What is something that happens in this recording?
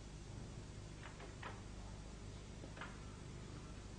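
Photographs are laid down on a table with soft slaps.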